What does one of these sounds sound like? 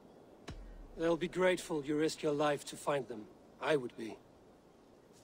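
A man speaks calmly in a deep voice.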